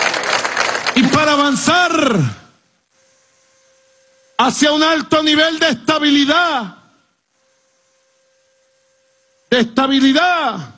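A man speaks forcefully into a microphone, amplified over loudspeakers.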